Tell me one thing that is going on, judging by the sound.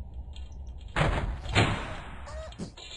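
A wooden shelf topples and crashes to the floor.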